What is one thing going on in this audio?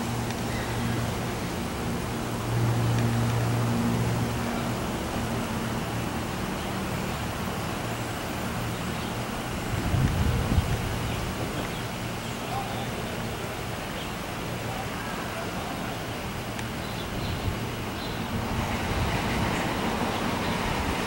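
Cable car gondolas rumble and hum steadily along their cables.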